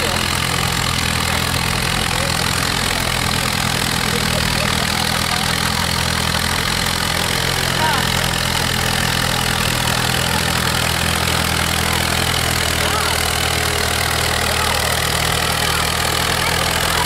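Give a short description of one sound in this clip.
An old tractor engine chugs loudly and steadily close by.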